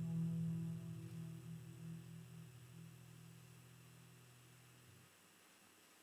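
A classical guitar plays slow, ringing notes that fade away.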